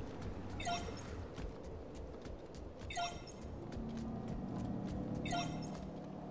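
Footsteps patter quickly on the ground as a figure runs.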